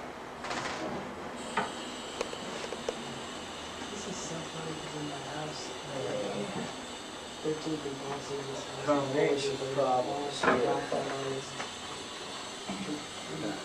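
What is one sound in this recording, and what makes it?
A porcelain toilet lid clanks as it is lifted and set down.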